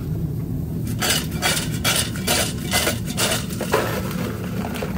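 Fries tumble from a metal bowl into a cardboard box.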